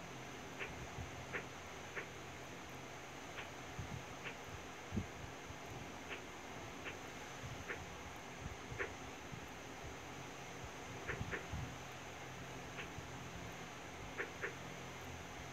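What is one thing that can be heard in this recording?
Short soft clicks sound as menu items are tapped.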